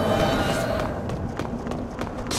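Footsteps tap on stone stairs.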